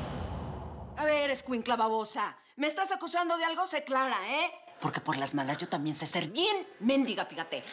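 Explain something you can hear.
A woman speaks forcefully and mockingly, close by.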